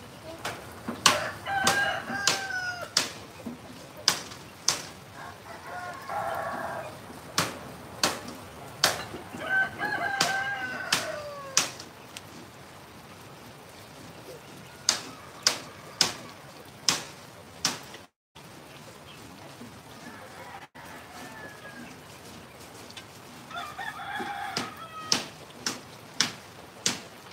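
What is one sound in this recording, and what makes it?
Sticks of firewood clack and knock against each other.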